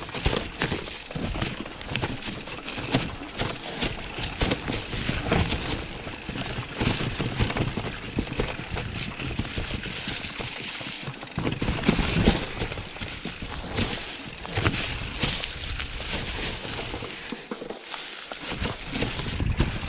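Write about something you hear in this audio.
Bicycle tyres roll and crunch over rocky ground and dry leaves.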